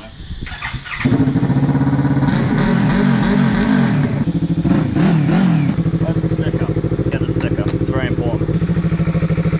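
A motorcycle engine starts and idles with a deep, steady rumble.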